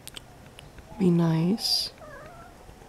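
A cat meows nearby.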